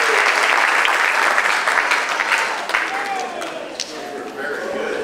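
An audience applauds loudly in a room, then the clapping fades.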